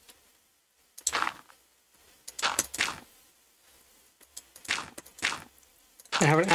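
Dirt blocks crunch as they are dug away, in short bursts.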